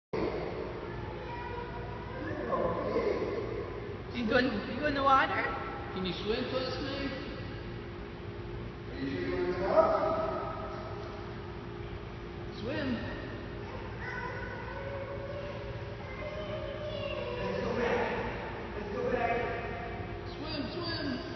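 Water splashes softly as a person swims.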